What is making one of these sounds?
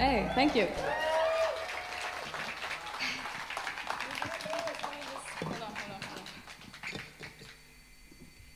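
An audience cheers and whistles in a large hall.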